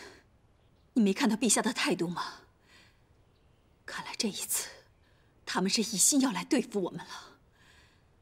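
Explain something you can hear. A middle-aged woman speaks with feeling.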